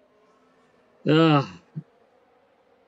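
A young man exclaims briefly and loudly, close to a microphone.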